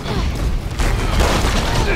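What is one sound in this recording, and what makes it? A gunshot fires.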